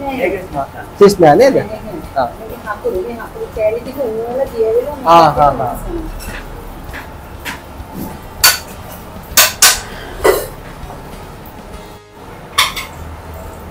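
A metal pan clanks and scrapes on a stove.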